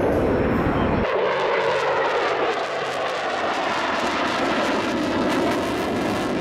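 A fighter jet roars overhead in flight.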